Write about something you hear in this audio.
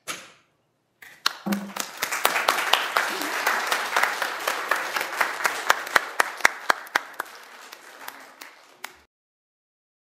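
People clap their hands in an echoing room.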